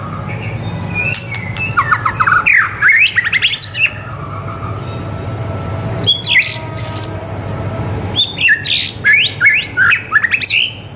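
A white-rumped shama sings in loud, rich whistled phrases.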